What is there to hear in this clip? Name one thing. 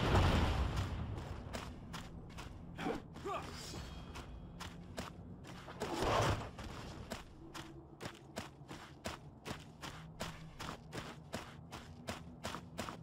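Footsteps walk steadily on stone.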